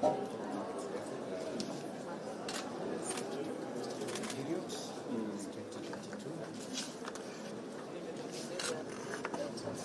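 Several men talk in low voices nearby.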